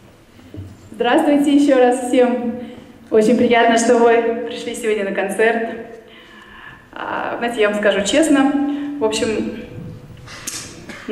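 A woman sings into a microphone, heard through loudspeakers in a large hall.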